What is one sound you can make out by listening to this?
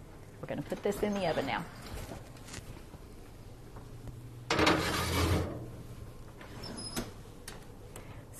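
An oven door opens and closes.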